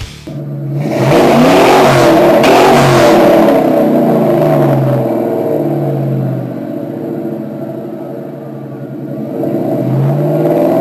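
A car engine revs up sharply and falls back several times.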